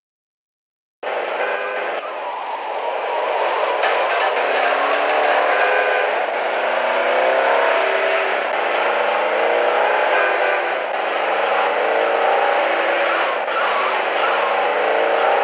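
A car engine roars and revs as the car speeds along.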